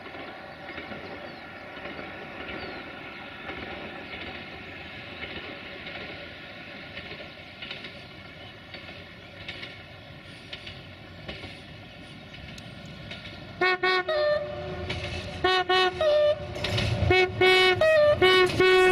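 A diesel train engine hums in the distance and grows louder as it approaches.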